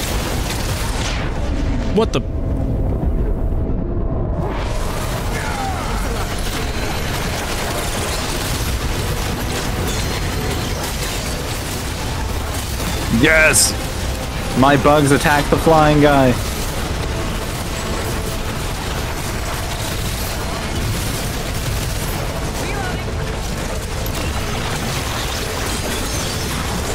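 Gunfire and blasts crackle from a video game.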